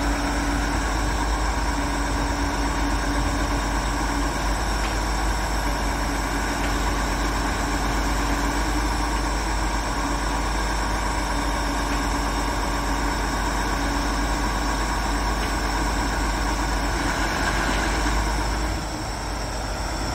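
A truck engine runs steadily nearby.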